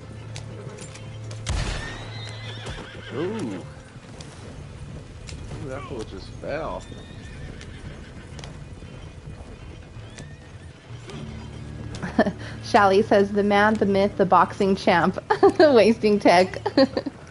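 A horse-drawn wagon rolls and creaks over a dirt track.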